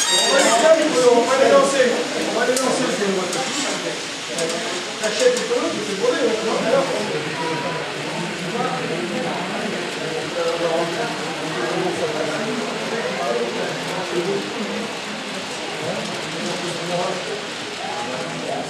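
Small model trains rattle and click along their tracks.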